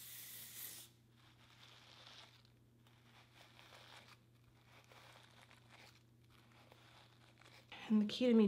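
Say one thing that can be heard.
A brush scrapes through hair.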